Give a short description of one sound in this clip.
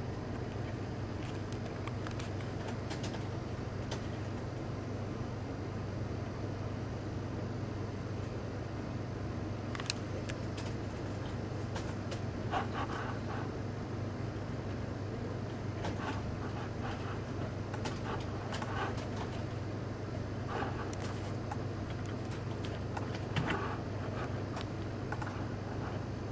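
A handheld game console plays short electronic blips and chimes through its small speaker.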